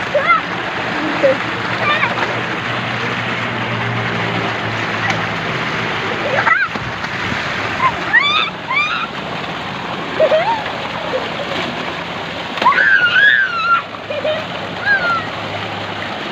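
Young boys shout and laugh nearby.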